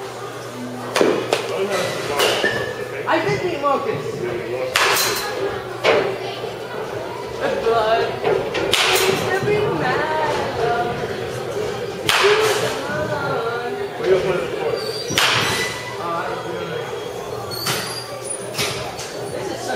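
A bat cracks sharply against a ball, again and again.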